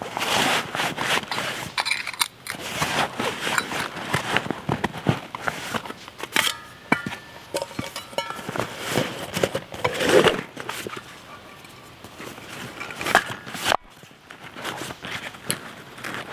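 Nylon straps rustle and buckles click as a backpack is adjusted.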